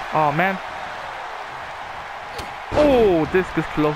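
Bodies thud onto a wrestling mat.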